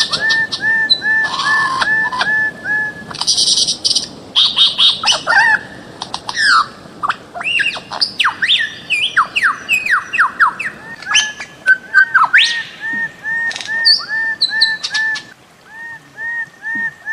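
A bird calls loudly with repeated whistling and squawking notes.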